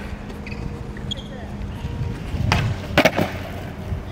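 Skateboard wheels rumble across stone paving outdoors.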